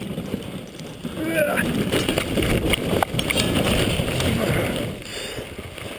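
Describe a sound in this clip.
A sled tips over and scrapes through deep snow.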